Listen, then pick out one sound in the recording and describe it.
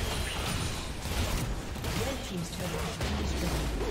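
A loud explosion bursts.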